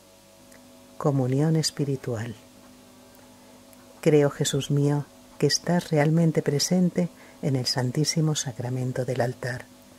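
An elderly man recites slowly and calmly through a microphone.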